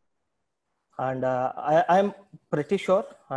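A young man speaks calmly through an online call microphone.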